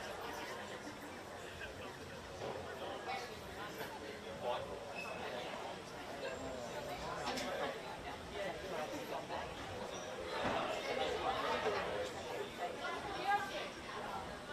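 Young women talk and call out at a distance, outdoors in the open.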